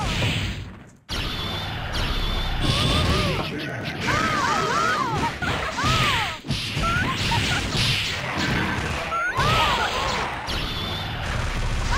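Video game blasts and hits crash rapidly.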